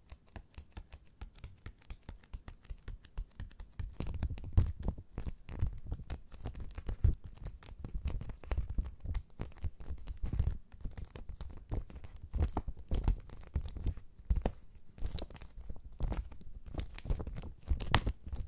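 A plastic sleeve crinkles and crackles close up as hands flex it.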